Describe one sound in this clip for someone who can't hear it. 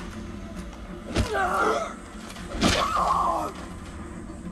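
A zombie snarls and groans close by.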